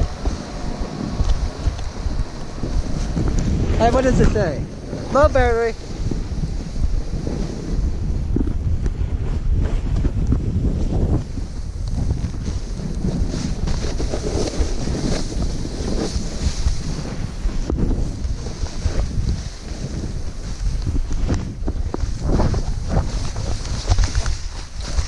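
Snowboards carve and scrape through powdery snow.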